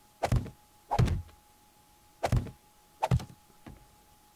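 Heavy stone blocks thud down one after another.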